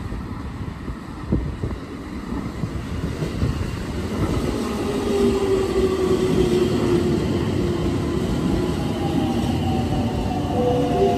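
A train pulls into the station, its wheels rumbling louder over the rails.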